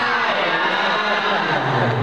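A boy speaks through a microphone and loudspeaker.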